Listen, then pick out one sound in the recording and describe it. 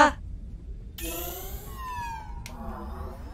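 A bright electronic chime rings out.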